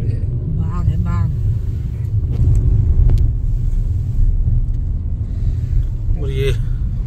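A car's engine and tyres rumble steadily on a road.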